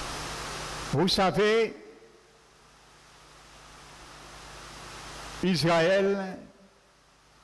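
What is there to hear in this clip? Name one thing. A man speaks through a microphone in an echoing hall, with short emphatic phrases.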